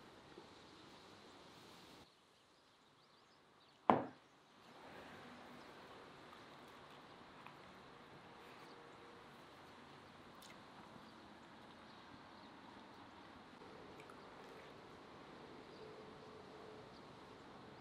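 A man chews food with his mouth closed.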